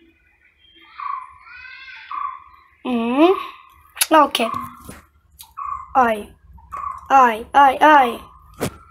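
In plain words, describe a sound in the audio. A young child talks and squeals excitedly close to a microphone.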